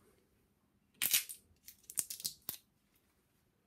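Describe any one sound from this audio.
A screw cap twists open with a crack.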